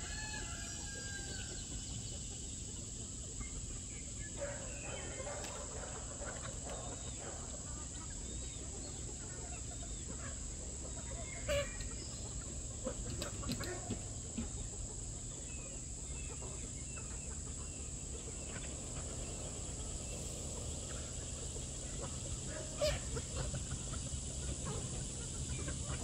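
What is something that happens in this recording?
A flock of chickens clucks and cackles outdoors.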